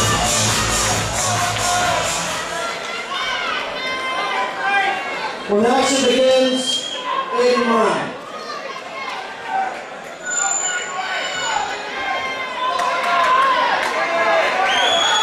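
A man announces loudly over a loudspeaker in a large echoing hall.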